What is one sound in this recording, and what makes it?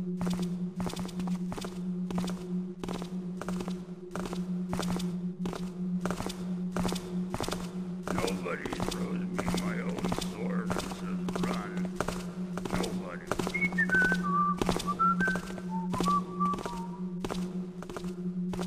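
Footsteps walk steadily at an even pace on a hard floor.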